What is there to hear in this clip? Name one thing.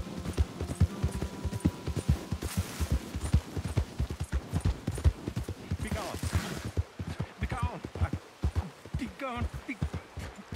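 A horse gallops over grass.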